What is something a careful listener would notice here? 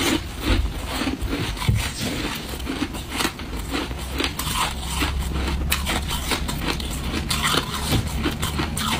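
Ice crunches and crackles close to a microphone.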